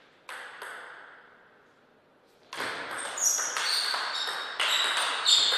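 A ping-pong ball clicks back and forth off paddles and the table in a quick rally.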